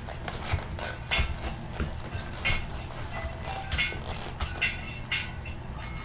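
Boots step and shuffle on a wooden floor.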